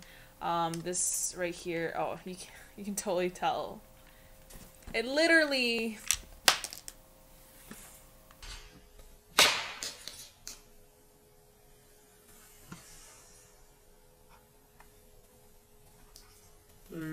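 Plastic buttons click.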